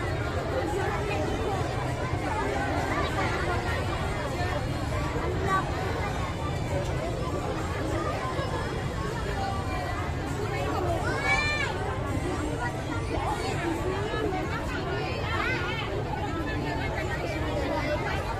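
Traditional music plays loudly through outdoor loudspeakers.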